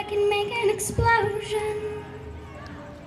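A young girl sings a held note through a loudspeaker outdoors.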